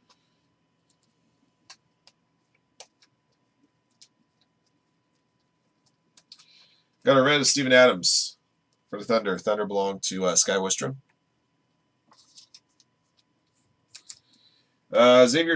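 Trading cards rustle and click as hands shuffle through them.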